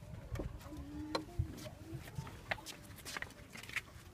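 A metal van door latch clicks and clanks.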